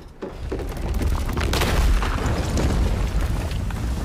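Rocks crash and tumble down.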